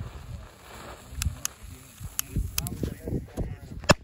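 A fuse hisses and sizzles as it burns.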